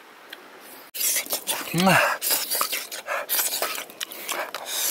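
A wooden stick scrapes and squelches through a thick paste in a clay bowl.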